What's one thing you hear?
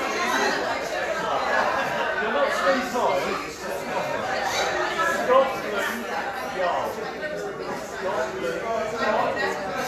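An elderly man talks at a microphone, calmly and close by.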